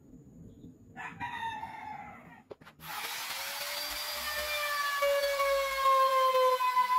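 A power router whines loudly and cuts into wood.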